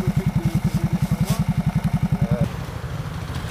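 A motorcycle engine idles with a fast, even putter nearby.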